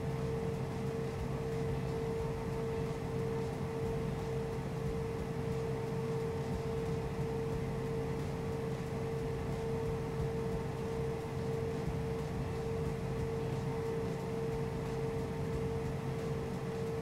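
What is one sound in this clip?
A jet engine hums steadily at idle, with a constant whine.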